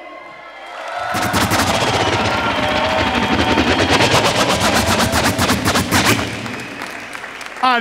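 A crowd cheers and claps loudly in a large echoing hall.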